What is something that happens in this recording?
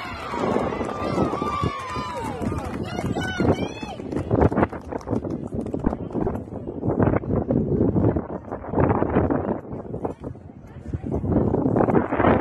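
Young girls shout and cheer from across an outdoor field.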